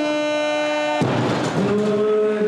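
A heavy barbell crashes down onto the floor.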